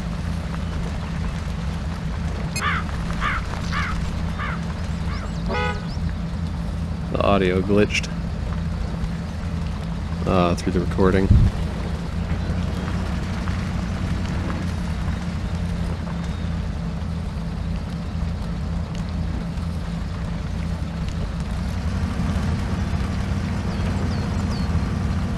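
A heavy truck engine rumbles steadily while driving.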